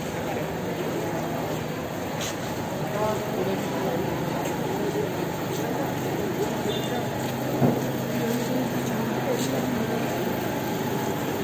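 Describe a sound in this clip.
Footsteps shuffle on a paved floor.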